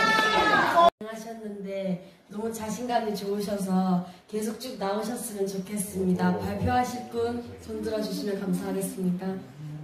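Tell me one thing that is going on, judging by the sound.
A teenage girl speaks into a handheld microphone.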